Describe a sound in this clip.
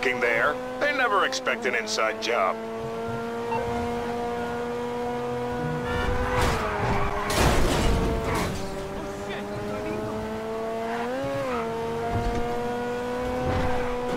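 A car engine hums steadily, rising and falling in pitch as it drives.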